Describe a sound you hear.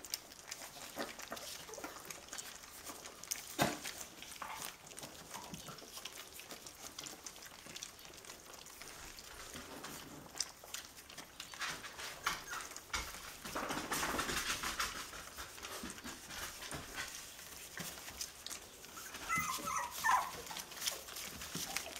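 Puppies rustle and scratch on crinkling newspaper.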